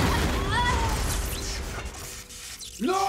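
A heavy metal body crashes down with a loud rumbling impact.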